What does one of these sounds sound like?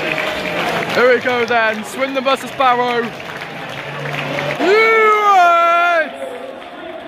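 Fans sing and chant loudly together.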